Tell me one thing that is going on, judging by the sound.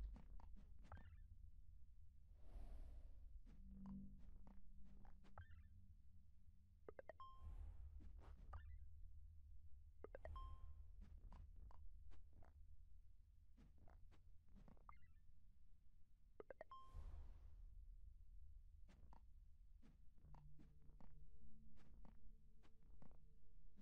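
Soft clicks sound as game blocks snap into place.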